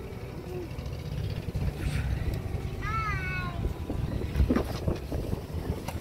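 A child climbs onto a car seat with soft thumps and rustling.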